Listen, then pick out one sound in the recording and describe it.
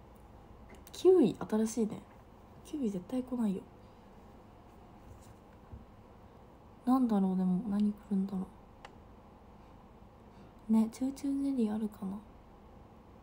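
A young woman speaks softly and calmly, close to a microphone.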